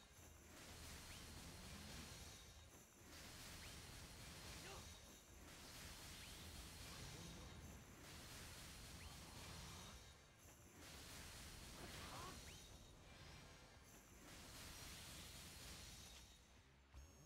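Magic spells burst and crackle with each attack.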